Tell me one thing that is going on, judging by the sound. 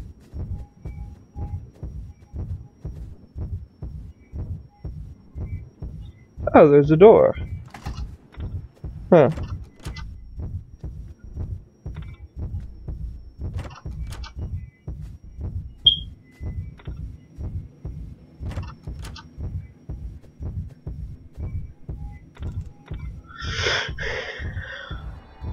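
Footsteps thud in a steady, quick rhythm.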